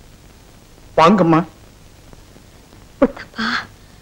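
A man speaks a few short words.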